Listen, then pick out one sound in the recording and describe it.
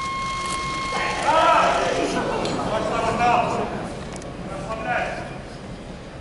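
A crowd cheers and shouts encouragement in a large echoing hall.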